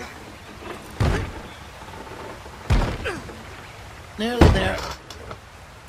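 A wooden wagon wheel thuds and creaks as a man lifts it.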